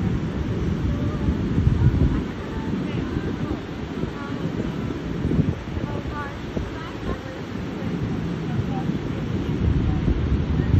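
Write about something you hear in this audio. Ocean waves wash onto the shore.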